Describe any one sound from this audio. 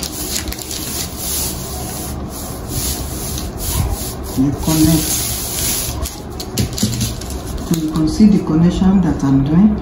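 A marker pen scratches along paper.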